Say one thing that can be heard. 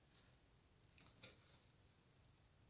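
A brush taps lightly against the rim of a small glass bottle.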